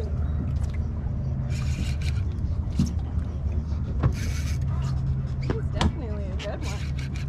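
A boat engine idles with a low steady rumble.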